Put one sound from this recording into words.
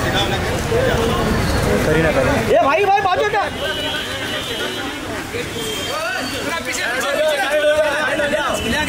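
Several men talk and call out to one another outdoors.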